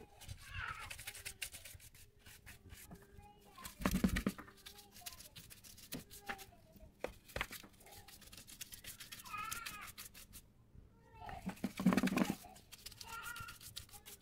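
A stiff brush scrubs and scrapes along a window track.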